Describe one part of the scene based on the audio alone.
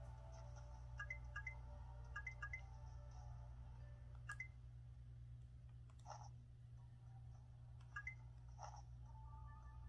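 Short electronic menu beeps sound from a handheld game console.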